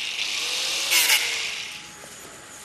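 An angle grinder screeches against metal.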